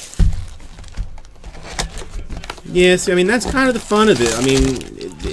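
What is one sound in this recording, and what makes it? Cardboard packaging rustles and taps as a box is handled and opened.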